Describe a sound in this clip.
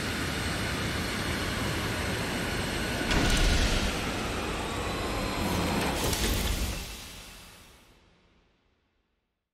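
A spaceship engine hums and roars steadily, then fades away.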